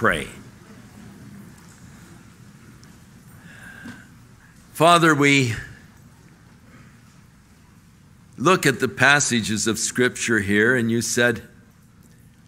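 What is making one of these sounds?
A man speaks slowly and solemnly through a microphone in a large echoing hall, with long pauses.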